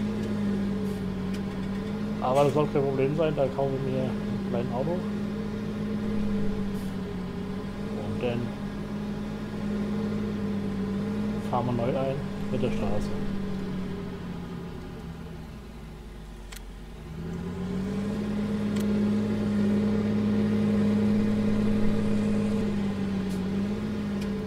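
A tractor engine hums steadily, dropping away briefly and then rising again.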